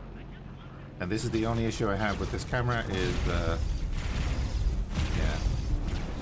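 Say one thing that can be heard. A spaceship engine rumbles low.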